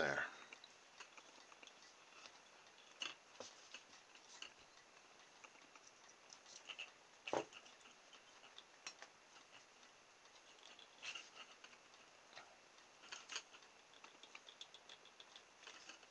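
Small plastic parts click and tap softly as they are fitted onto a thin rod.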